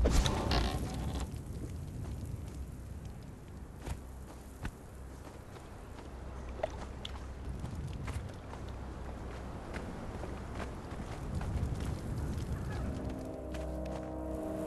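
Footsteps pad across a hard floor.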